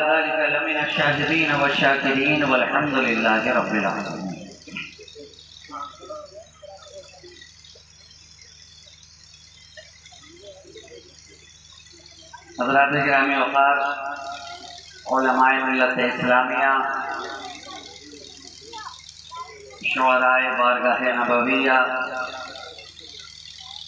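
A man sings in bursts through a loudspeaker, echoing outdoors.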